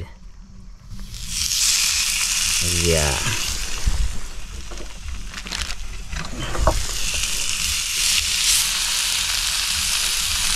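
Meat sizzles loudly on a hot stone.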